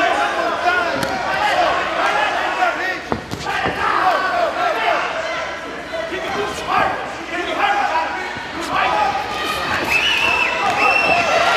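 Punches thud against boxing gloves and bodies.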